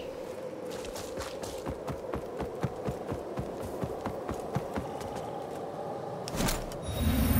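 Footsteps crunch along a path.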